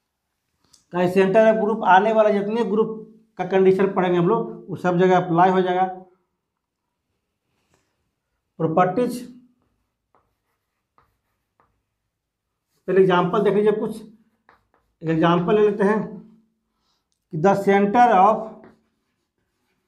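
A man speaks calmly in short phrases, as if explaining.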